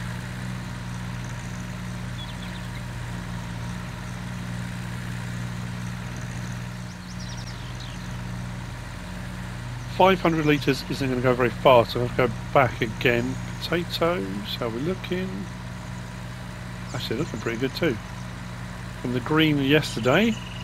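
A small tractor engine chugs steadily with a low hum.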